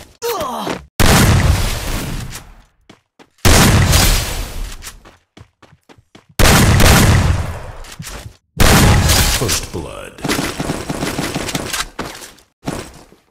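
Gunshots boom loudly, each followed by a long fading rumble.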